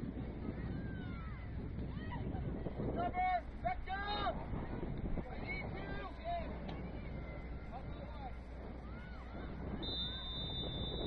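Young players shout to each other across an open field at a distance.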